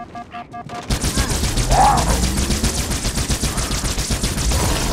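A needle gun fires a rapid stream of sharp shots.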